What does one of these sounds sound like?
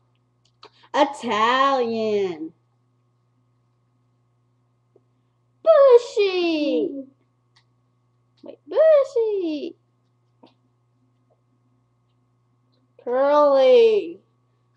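A young girl speaks playfully close by, in short bursts.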